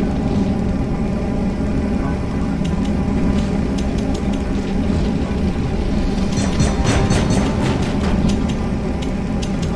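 Metal footsteps clank on a metal walkway.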